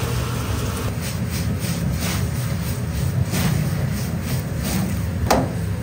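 Greens sizzle and rustle as a wok is tossed.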